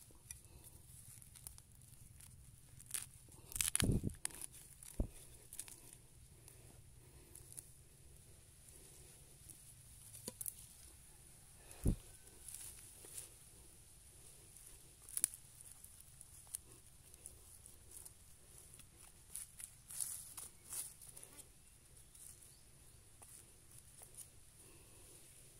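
A trowel scrapes and scratches through dry soil in short bursts.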